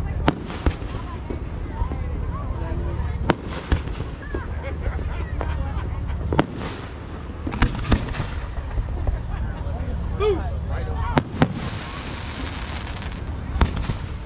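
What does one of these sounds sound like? Fireworks crackle and fizz after bursting.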